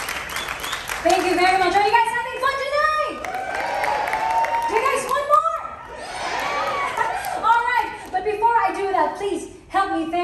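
A woman sings loudly through a sound system in a large hall.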